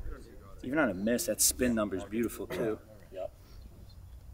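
A young man talks with animation nearby.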